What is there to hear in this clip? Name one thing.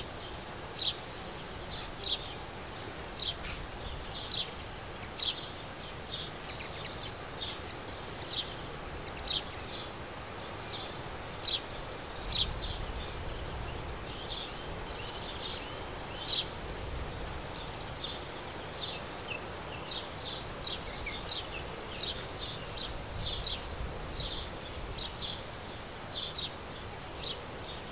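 Sparrows chirp in short, repeated high chirps close by.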